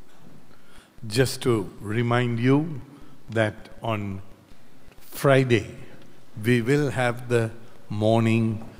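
An elderly man speaks slowly and expressively into a microphone.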